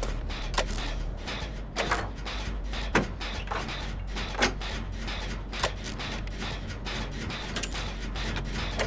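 Metal parts clank as a generator engine is worked on by hand.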